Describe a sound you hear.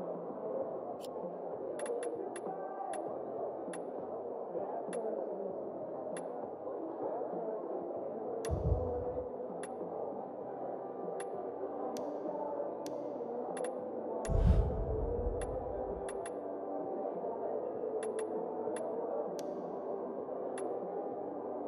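Game menu clicks tick sharply as selections change.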